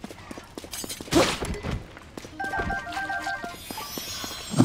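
Blows strike a large creature in a fight.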